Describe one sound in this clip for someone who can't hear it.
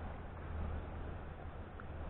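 A fishing lure splashes into calm water.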